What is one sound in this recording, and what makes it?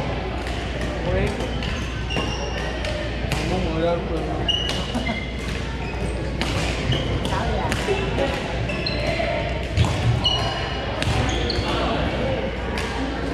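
Shoes squeak sharply on a hardwood floor.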